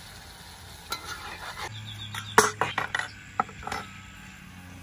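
Metal plates clink down on a wooden table.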